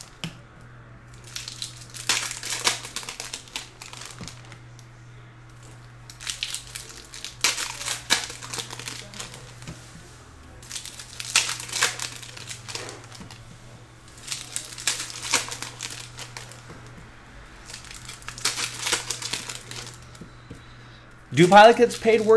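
Trading cards slide and rustle in bursts as they are flipped by hand.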